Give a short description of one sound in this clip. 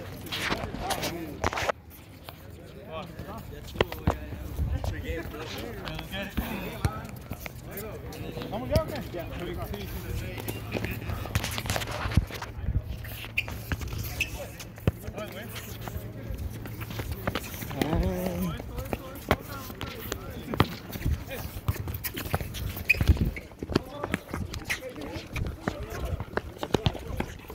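Sneakers scuff and patter on a hard court.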